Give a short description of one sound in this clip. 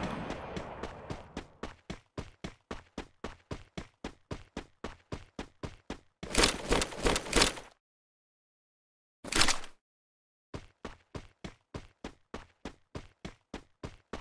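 Footsteps patter quickly and evenly.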